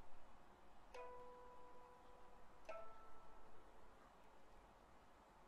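A plucked lute sounds a few notes.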